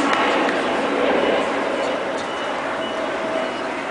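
A jet plane roars overhead.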